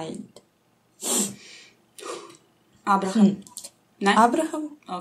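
A young woman reads out verses over an online call, in short phrases with pauses.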